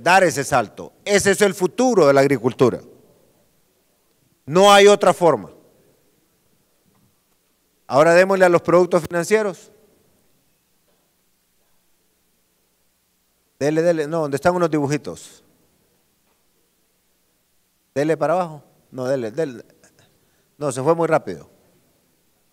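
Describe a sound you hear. A man speaks through a microphone and loudspeakers, pausing between phrases.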